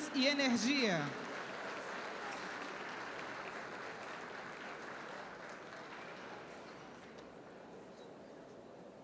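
A large crowd applauds in a big hall, the clapping slowly fading.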